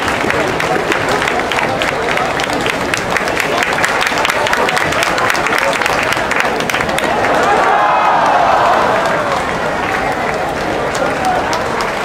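A large crowd in an echoing arena murmurs and claps.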